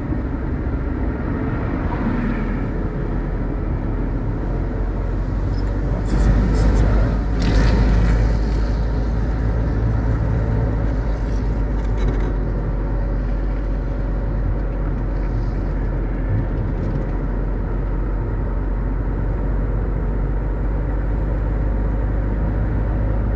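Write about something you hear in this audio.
Tyres roll on asphalt.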